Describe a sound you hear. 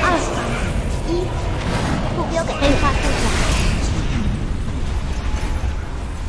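Magic spells whoosh and crackle in a busy battle.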